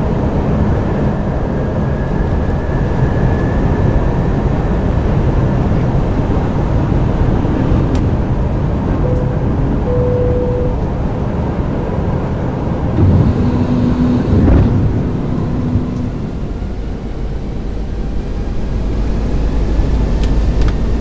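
Jet engines roar steadily as an airliner flies in for landing.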